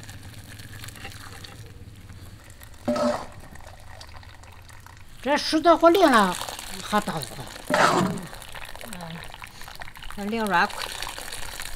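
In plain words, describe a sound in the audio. Water pours and splashes into a bowl.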